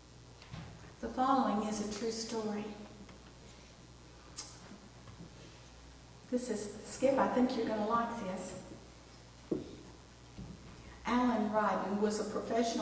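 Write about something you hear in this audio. A woman speaks calmly into a microphone, heard through a loudspeaker in an echoing room.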